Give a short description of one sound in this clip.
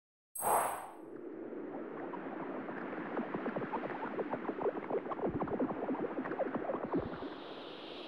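A deep rumble with cracking rises as rocks break loose and float upward.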